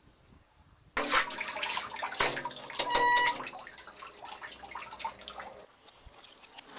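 Water sloshes in a bucket.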